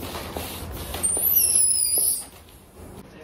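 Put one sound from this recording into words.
A rubber balloon squeaks loudly as it is handled.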